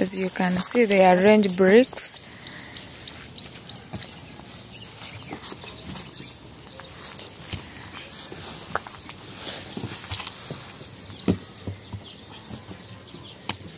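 Bricks knock and clatter as they are moved by hand.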